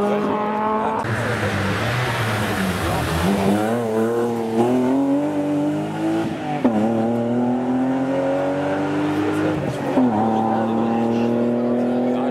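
A second rally car engine roars and revs through the gears as it passes and fades into the distance.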